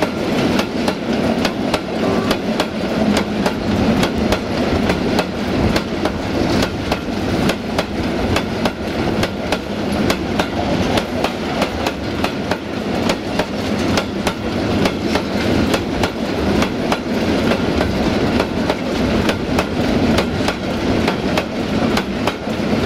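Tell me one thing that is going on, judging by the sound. Train wheels click rhythmically over rail joints.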